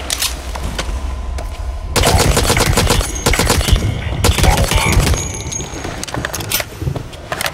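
A weapon is reloaded with metallic clicks.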